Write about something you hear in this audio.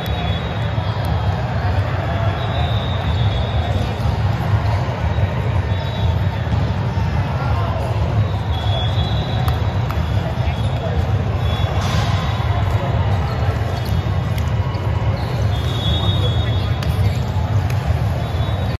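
A crowd murmurs, echoing in a large hall.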